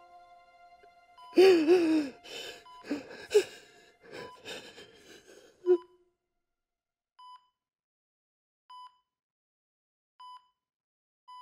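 A heart monitor beeps at a slow, even pace.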